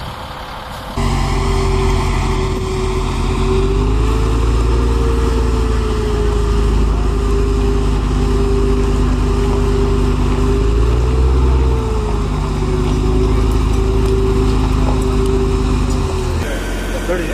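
A heavy armoured vehicle's diesel engine rumbles and whines loudly close by as it turns.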